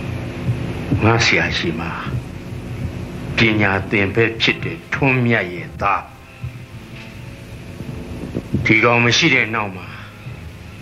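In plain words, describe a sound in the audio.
An older man speaks with feeling, close by.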